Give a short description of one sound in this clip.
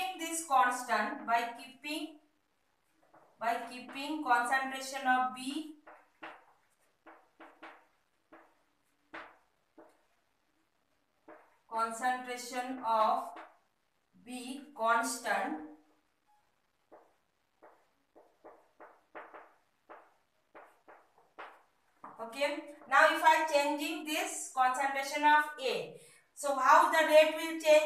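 A woman speaks calmly and clearly, as if teaching, close by.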